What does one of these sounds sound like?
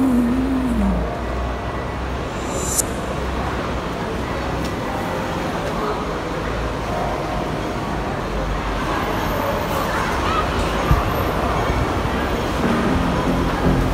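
Footsteps walk on a hard floor.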